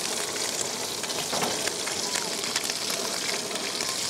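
Metal tongs clink against a pan.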